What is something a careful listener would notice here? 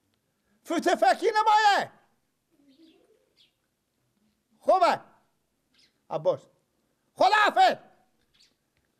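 A middle-aged man speaks close by in short, lively bursts.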